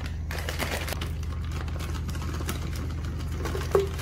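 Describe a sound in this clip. Frozen berries rattle as they are poured into a plastic cup.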